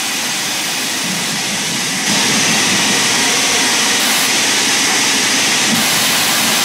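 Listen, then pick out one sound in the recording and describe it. A steam locomotive rumbles and hisses as it rolls along the track.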